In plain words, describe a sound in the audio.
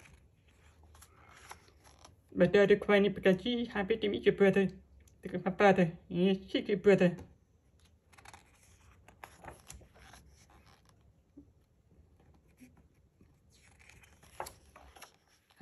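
A stiff paper page rustles as it is turned.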